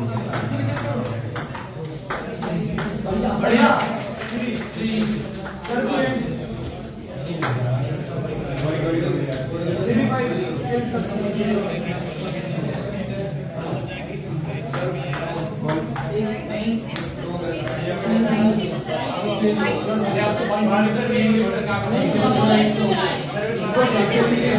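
A ping-pong ball clicks sharply on paddles and a table.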